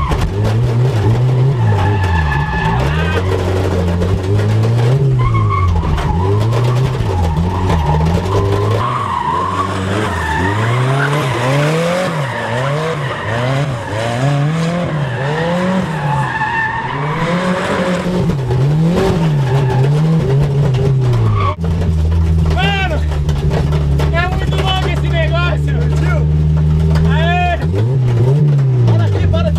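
A young man laughs and shouts with excitement close by.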